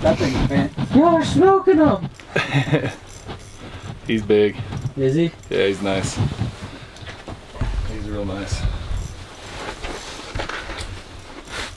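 A fishing reel clicks as a man winds in line.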